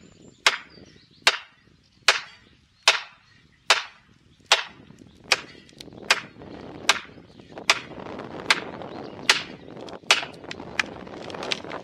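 A sledgehammer strikes a metal wedge in a tree trunk with sharp, regular clangs.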